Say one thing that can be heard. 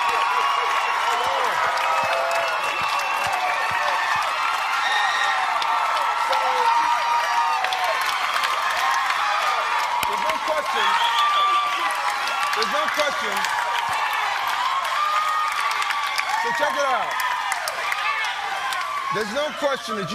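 A large crowd claps.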